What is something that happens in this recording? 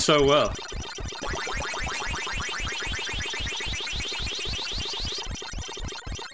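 An arcade game siren warbles steadily in the background.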